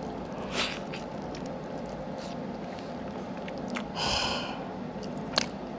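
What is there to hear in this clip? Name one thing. A man chews meat loudly and wetly, close to a microphone.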